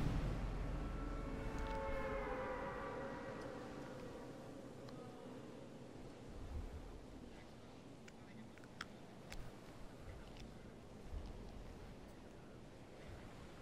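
Wind rushes past steadily and slowly grows softer.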